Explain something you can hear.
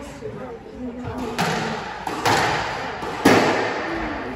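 A squash racket strikes a ball, echoing in an enclosed court.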